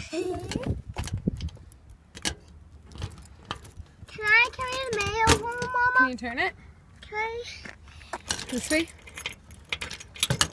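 Keys jingle and scrape into a lock with small clicks.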